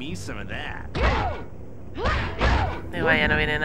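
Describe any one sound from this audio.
Heavy blows land with loud thuds during a fight.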